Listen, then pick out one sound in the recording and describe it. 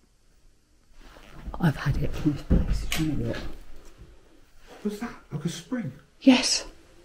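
A man speaks quietly and nervously close by.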